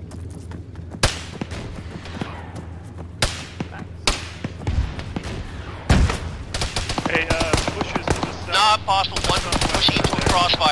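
Rifle shots crack nearby and echo across open ground.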